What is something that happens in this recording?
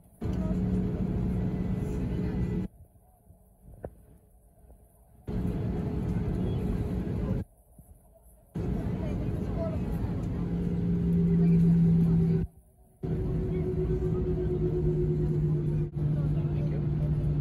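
Jet engines hum and rumble steadily from inside a taxiing aircraft.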